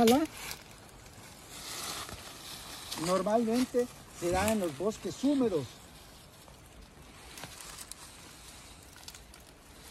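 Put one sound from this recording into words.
Dry leaves rustle under hands.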